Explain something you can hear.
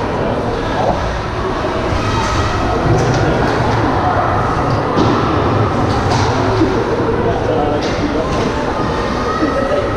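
Skate blades scrape and hiss across the ice.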